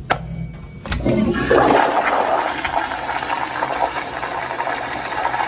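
A flushometer toilet flushes with a forceful rush of water.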